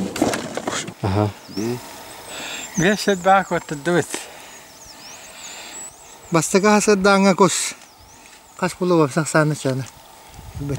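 An elderly man talks calmly up close.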